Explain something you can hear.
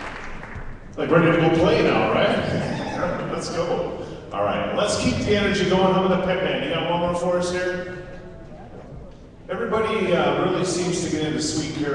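A man speaks steadily into a microphone over loudspeakers in a large echoing hall.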